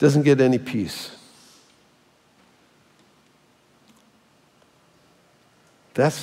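An elderly man speaks calmly through a microphone in a large echoing room.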